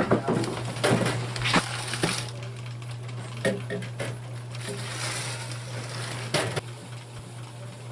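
A plastic cooler lid knocks and clatters.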